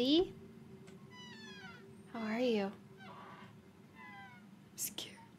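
A door creaks slowly open.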